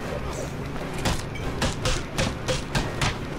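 Punches land with heavy, rapid thuds during a brawl.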